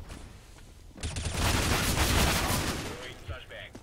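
Rifle shots fire in quick bursts.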